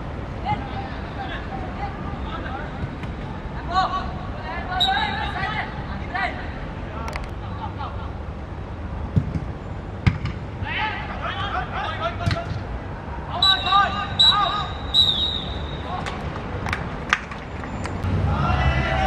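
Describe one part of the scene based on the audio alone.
Young male players shout across an open field.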